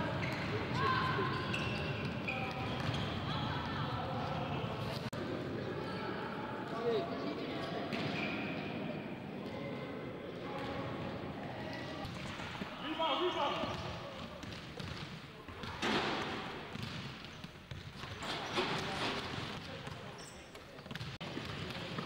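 Men shout and call out to each other across a large echoing hall.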